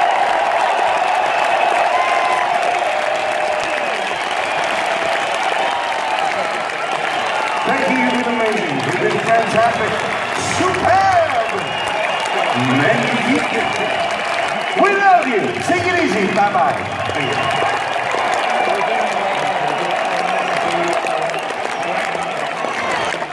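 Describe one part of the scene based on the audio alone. A large crowd cheers and sings along.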